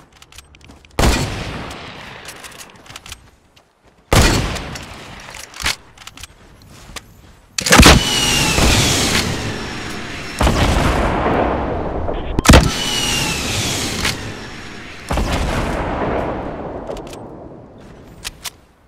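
Rocket launcher shots boom and explosions rumble with long echoes.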